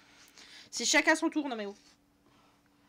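A young woman speaks with animation through a close microphone.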